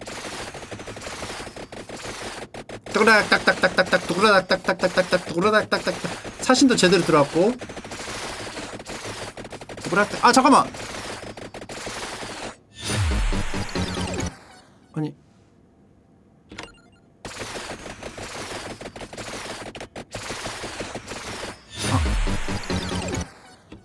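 Game music and effects play steadily.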